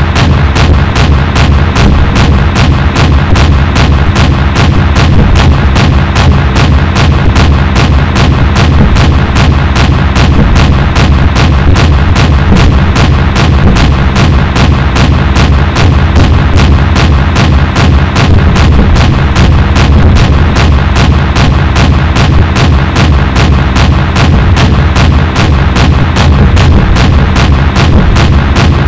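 Twin anti-aircraft guns fire in rapid, steady bursts.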